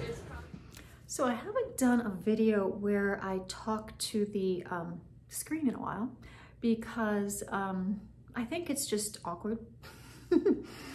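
A middle-aged woman speaks calmly and close up.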